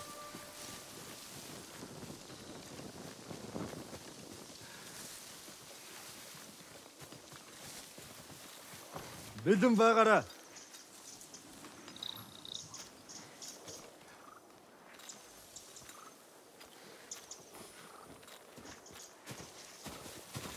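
Tall grass rustles softly as someone crawls through it.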